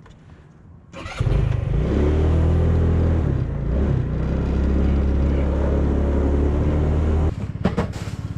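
A motorbike engine starts, revs and runs steadily as the bike rides off.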